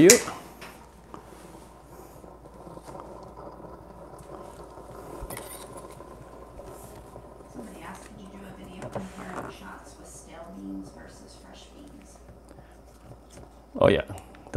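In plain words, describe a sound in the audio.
An espresso machine hums steadily.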